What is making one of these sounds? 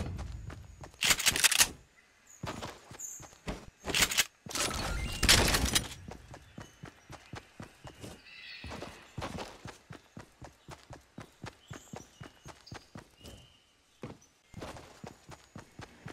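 Quick footsteps patter along the ground.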